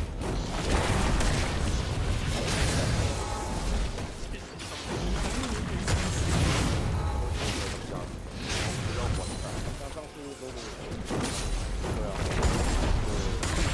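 Magic spells whoosh and crackle in a fight in a video game.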